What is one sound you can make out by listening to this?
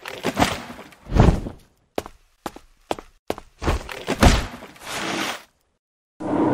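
A cardboard box rustles and thumps.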